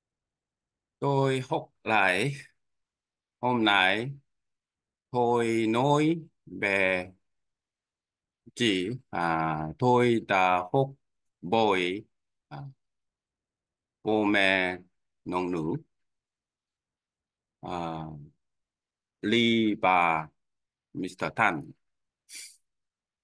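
A man dictates slowly in short phrases, close to a microphone.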